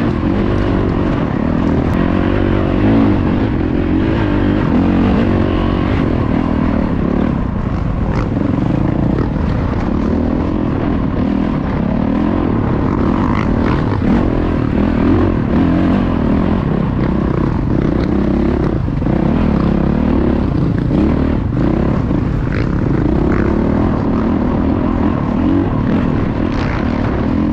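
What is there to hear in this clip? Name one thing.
A dirt bike engine revs loudly up close, rising and falling as it climbs.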